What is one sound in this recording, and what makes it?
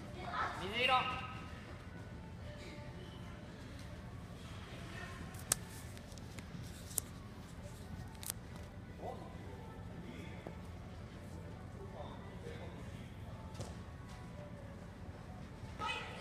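Children shout and call out across a large echoing indoor hall.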